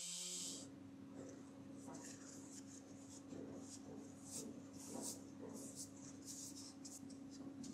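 A paintbrush swishes and scrapes across wood.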